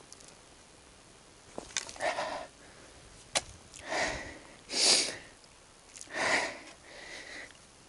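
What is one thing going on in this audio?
A person walks over soft, dry ground.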